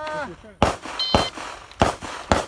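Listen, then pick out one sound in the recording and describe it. A shot timer beeps briefly.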